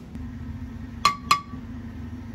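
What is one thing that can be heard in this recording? Powder taps into a metal pan.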